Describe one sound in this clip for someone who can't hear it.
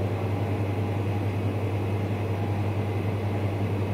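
Thick liquid pours into a bowl.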